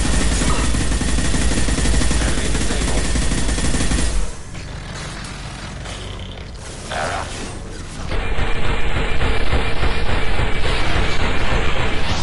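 An explosion booms and crackles.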